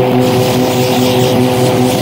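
A laser blaster fires with a buzzing zap.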